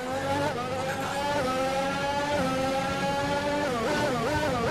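A racing car engine rises in pitch and drops sharply with each gear change.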